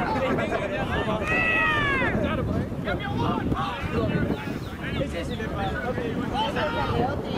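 Spectators cheer and shout from the sideline.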